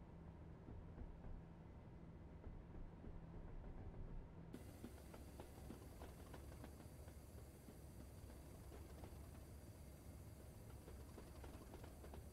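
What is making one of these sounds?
A train engine hums with a steady low drone.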